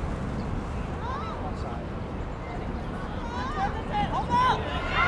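Young players shout to each other across an open outdoor field.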